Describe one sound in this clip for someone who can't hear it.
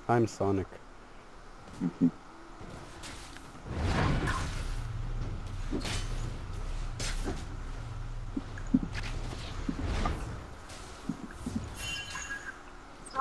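Game spells and weapon hits clash in a busy fight.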